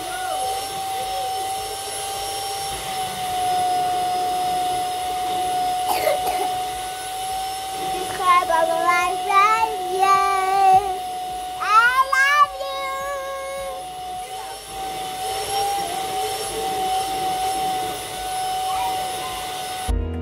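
A vacuum cleaner hums steadily throughout.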